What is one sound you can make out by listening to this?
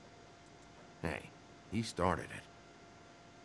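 A young man speaks briefly and casually, close to a microphone.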